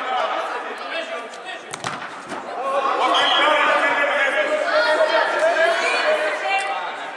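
Young players shout to one another in a large echoing hall.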